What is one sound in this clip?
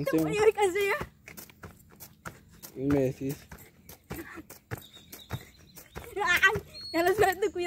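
Feet thump on grass as a boy jumps.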